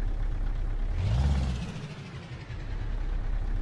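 A passing truck rushes by close.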